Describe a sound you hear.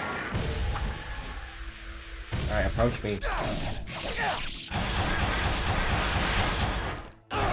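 Sword slashes whoosh and clang.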